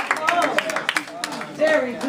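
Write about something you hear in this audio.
People clap their hands briskly.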